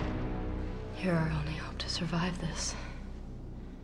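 A young woman speaks calmly and earnestly, close by.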